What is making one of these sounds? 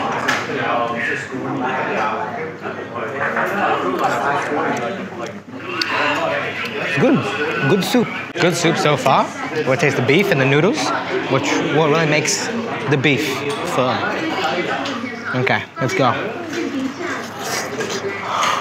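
A young man slurps soup noisily.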